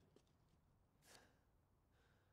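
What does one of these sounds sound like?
A sheet of paper rustles briefly.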